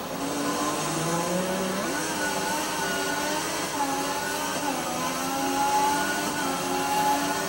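A racing car engine whines loudly, rising in pitch as it speeds up and dropping briefly at each gear change.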